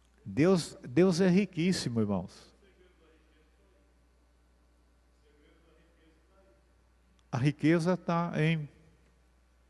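An elderly man speaks calmly into a microphone, with a pause between phrases.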